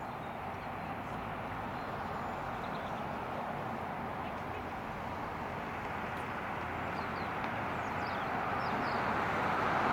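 An SUV approaches along the road, its tyres roaring louder on asphalt.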